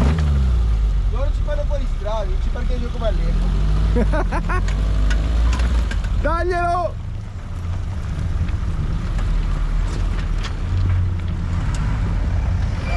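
An off-road vehicle's engine rumbles and revs as it climbs over rocks.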